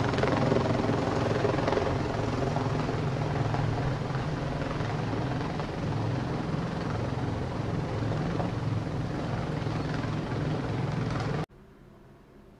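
A large truck engine rumbles loudly as it drives slowly past, close by.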